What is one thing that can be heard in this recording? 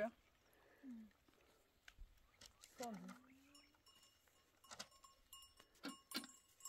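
Chickens cluck nearby outdoors.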